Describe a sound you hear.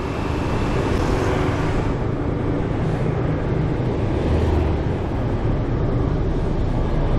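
A motorbike engine hums steadily up close while riding.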